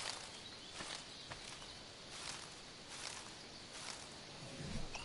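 Leaves rustle as someone pushes through dense undergrowth.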